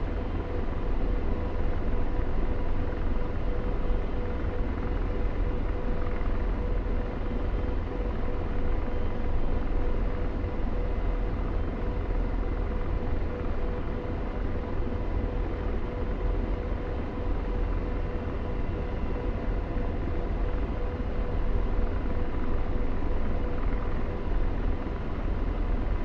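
A helicopter's engine and rotor roar steadily from inside the cockpit.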